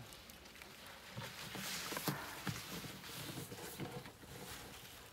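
Branches and needles rustle.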